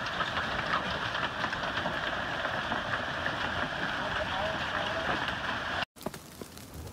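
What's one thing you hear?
Hail drums hard and steadily on the ground.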